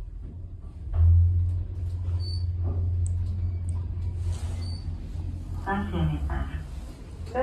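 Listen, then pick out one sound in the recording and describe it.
An elevator motor hums steadily as the car rises.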